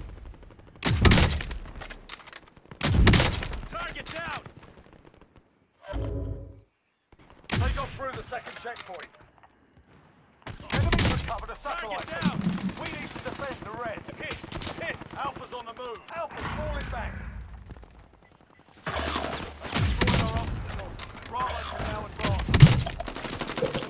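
A sniper rifle fires loud single shots with a booming echo.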